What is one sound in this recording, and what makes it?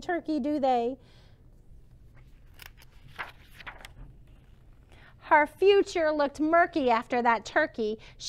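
A woman reads aloud expressively, close by.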